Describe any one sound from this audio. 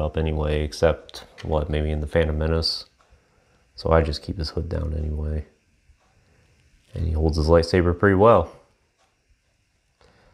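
Small plastic parts click as a toy sword is fitted into a figure's hand.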